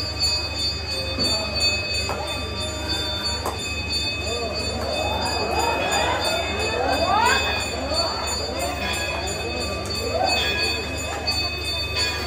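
A crowd of men and women chant and call out together in a hall with some echo.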